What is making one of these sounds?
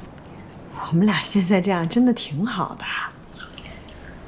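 A young woman speaks gently nearby.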